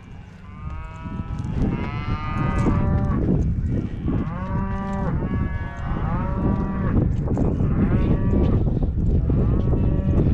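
A young calf bawls loudly again and again.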